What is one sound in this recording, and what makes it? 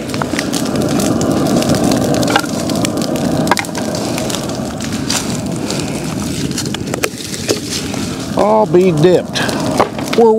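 A man tosses branches onto a pile with rustling thuds.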